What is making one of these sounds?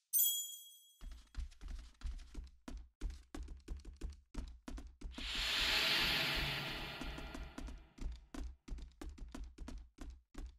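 Quick footsteps patter across a wooden floor.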